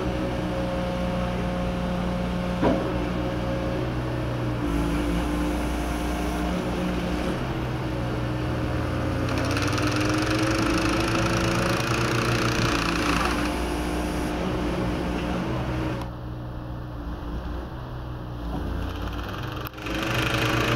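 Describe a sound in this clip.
A diesel engine on a rail machine hums and drones steadily.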